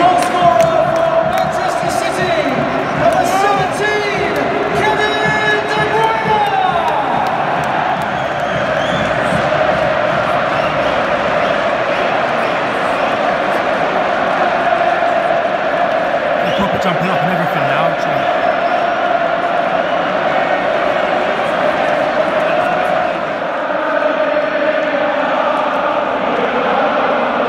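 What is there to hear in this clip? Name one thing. A large stadium crowd sings and chants loudly in unison, echoing around the stands.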